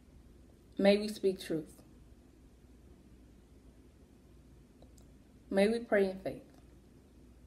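A young woman speaks calmly and closely into a microphone, in short phrases.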